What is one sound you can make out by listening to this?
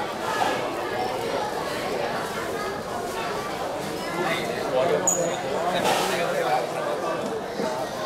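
Cymbals clash now and then.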